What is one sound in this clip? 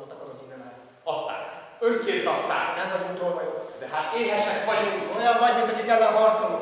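A group of men sing together in a large echoing hall.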